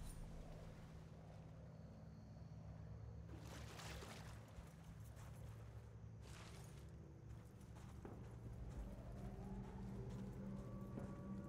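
Footsteps rustle through grass and leafy plants.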